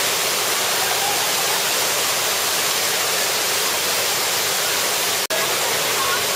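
Water pours down over rocks in a steady, rushing splash.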